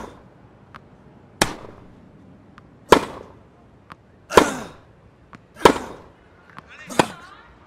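A ball bounces on a clay court.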